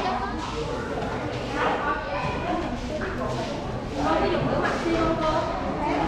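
A crowd of people chatters in the background of a large room.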